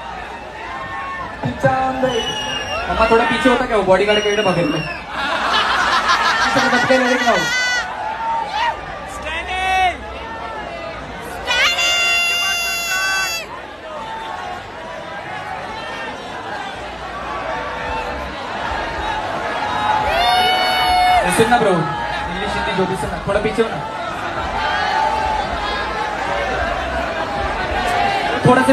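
A man raps loudly into a microphone over a booming sound system.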